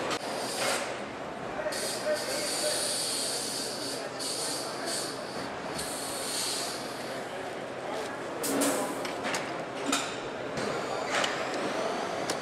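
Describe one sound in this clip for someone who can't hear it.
A large factory hall hums with steady machine noise.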